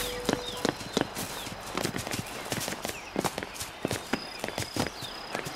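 Footsteps run quickly over soft ground.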